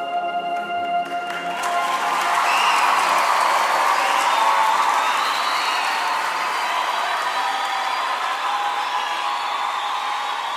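A man sings into a microphone.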